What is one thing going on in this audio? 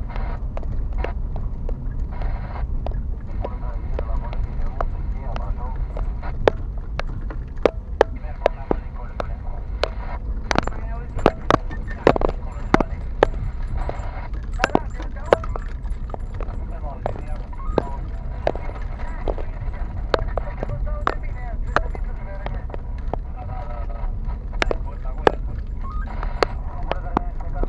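Loose stones knock sharply against the underside of a car.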